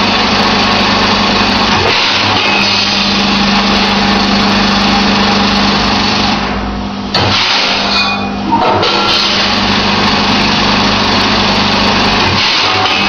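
A filling machine hums and rattles steadily.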